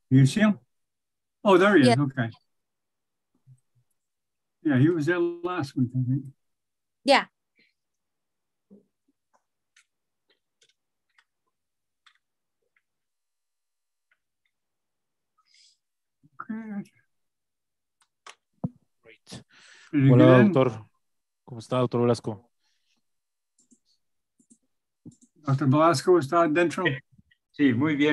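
An older man talks calmly over an online call.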